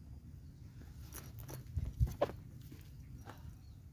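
Footsteps crunch on dry ground close by.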